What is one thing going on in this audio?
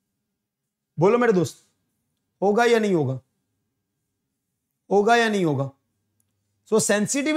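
A young man speaks in short bursts through a close microphone, as if teaching.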